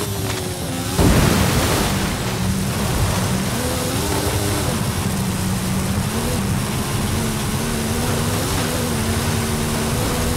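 Tyres crunch and hiss over loose dirt.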